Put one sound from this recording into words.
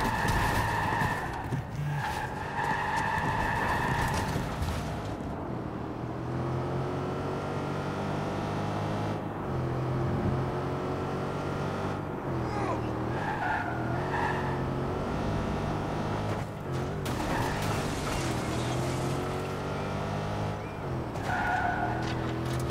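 A car engine revs and hums steadily, rising and falling in pitch.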